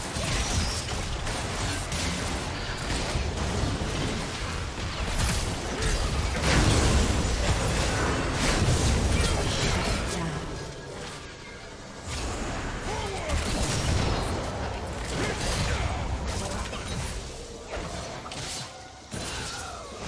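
Magic blasts and hits crackle and boom in a fast, busy fight.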